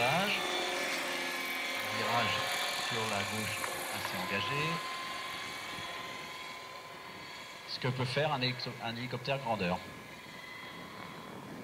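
A small helicopter's engine whines steadily overhead and slowly fades into the distance.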